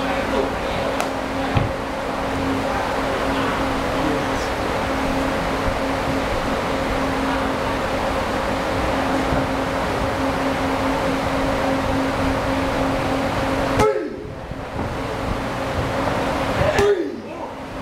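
Kicks and punches thud against padded pads.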